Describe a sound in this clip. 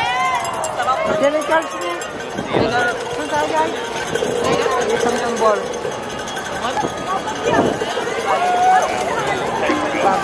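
Drums beat steadily as a parade passes.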